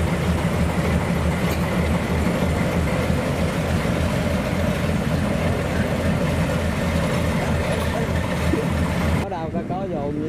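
A diesel locomotive engine rumbles loudly and steadily nearby.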